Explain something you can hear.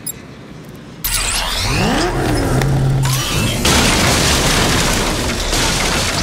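A vehicle engine roars loudly.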